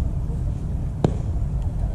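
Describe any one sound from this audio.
A bat cracks against a ball.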